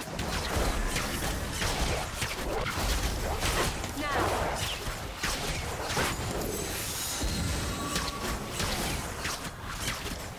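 Magic spells whoosh and crackle during a fight between game characters.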